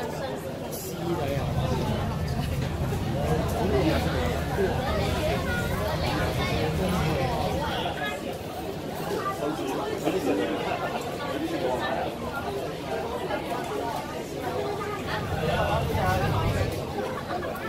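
A crowd of young students chatter outdoors.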